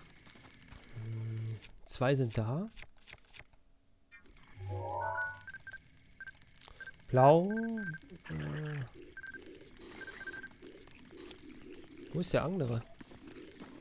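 Short electronic chimes and swooshes sound as a game menu is used.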